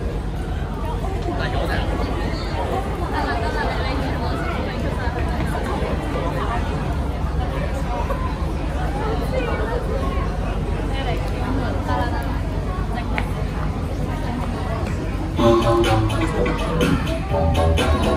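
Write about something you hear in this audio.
Young women chat nearby outdoors.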